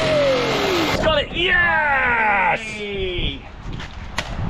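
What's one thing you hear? A young man laughs and groans with effort.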